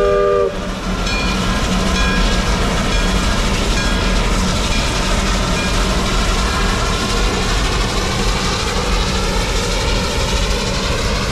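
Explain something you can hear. Wheels clank and squeal on the rails.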